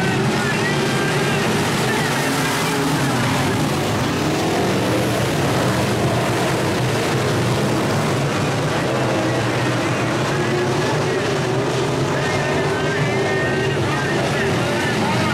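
Many race car engines roar loudly and rev up and down nearby.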